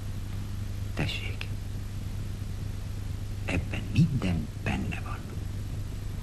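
A middle-aged man speaks calmly and closely.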